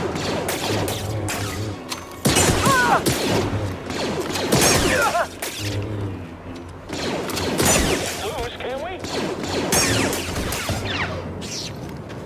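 A lightsaber hums and swooshes as it swings.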